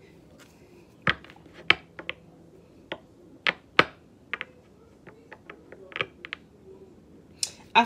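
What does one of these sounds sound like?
Cards tap and click against a table.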